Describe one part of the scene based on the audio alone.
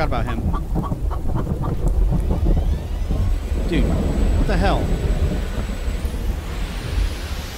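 Tyres crunch over a rough gravel road.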